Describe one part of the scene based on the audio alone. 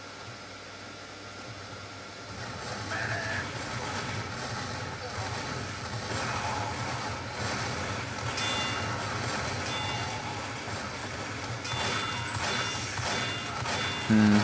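Gunfire crackles in a video game.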